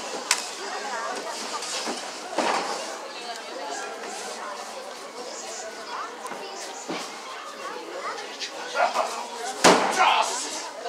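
Wrestlers slam onto a springy ring mat with loud thuds.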